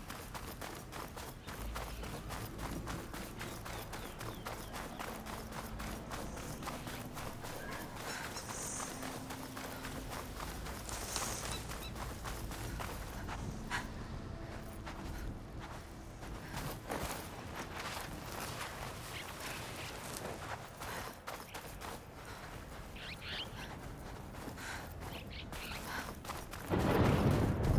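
Footsteps run through soft sand.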